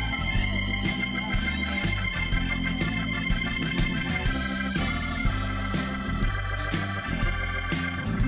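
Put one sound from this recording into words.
A man plays an electric organ.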